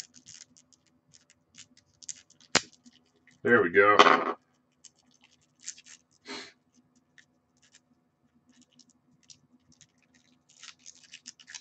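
Hands shuffle a deck of playing cards with soft, quick rustling clicks.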